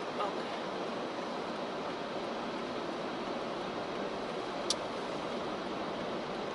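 Tyres roll steadily on a road.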